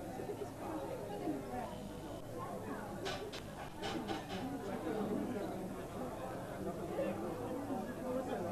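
Many people chatter and laugh in a crowded, echoing room.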